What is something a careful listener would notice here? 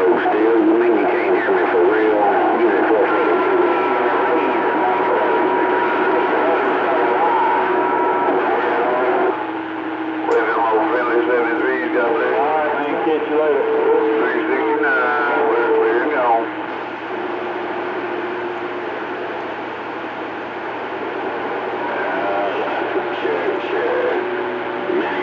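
A radio receiver hisses and crackles with static through a loudspeaker.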